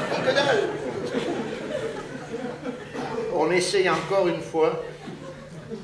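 An elderly man speaks into a microphone, heard through loudspeakers in a large echoing hall.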